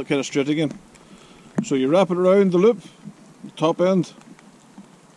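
A middle-aged man talks calmly close to the microphone.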